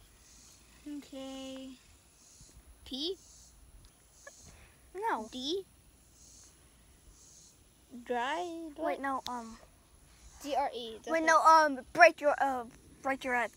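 A young boy talks close by with animated, sing-song pitch.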